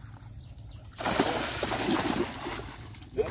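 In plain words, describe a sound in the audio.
Water splashes and churns as a net scoops a fish.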